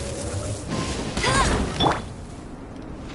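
A fiery blast bursts with a loud whoosh.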